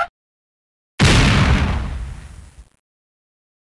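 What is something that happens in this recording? A loud cartoon crash booms and slowly fades.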